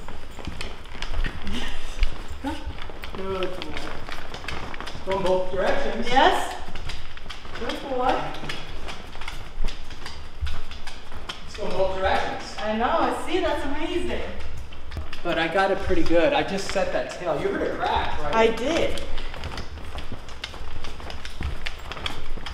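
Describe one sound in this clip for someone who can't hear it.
Footsteps tap on a wooden floor.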